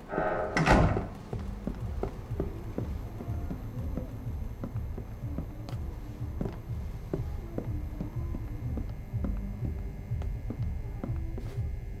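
Footsteps tap steadily on a hard floor indoors.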